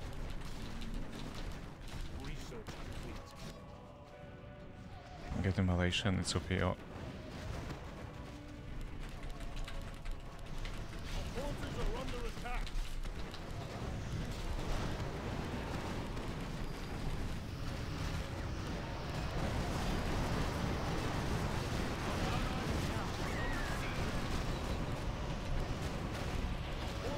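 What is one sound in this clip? Fantasy battle sounds clash, crackle and rumble steadily, growing louder.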